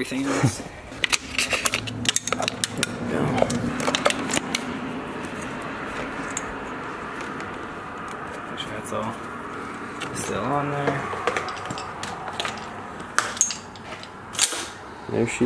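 Metal tools click and clink against an engine.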